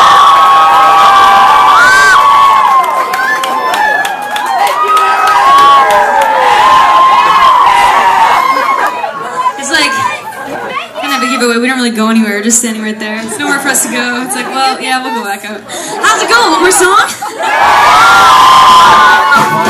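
A crowd cheers, whistles and shouts loudly.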